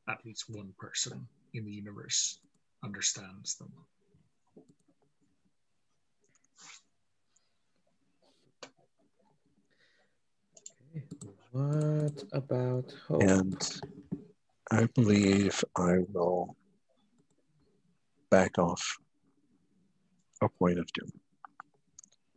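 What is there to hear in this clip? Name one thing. A man speaks calmly over an online call, in short bursts.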